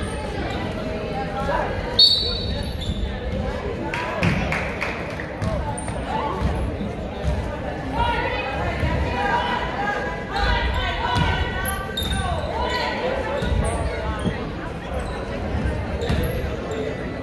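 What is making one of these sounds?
Spectators cheer and shout in an echoing gym.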